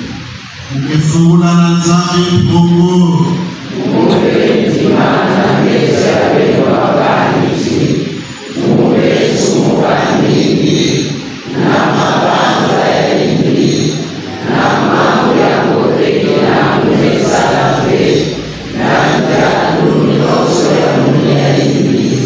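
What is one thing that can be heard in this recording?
A large congregation chants together in phrases, echoing in a big hall.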